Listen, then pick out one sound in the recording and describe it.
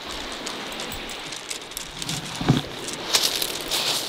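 A fish splashes as it is released into shallow water.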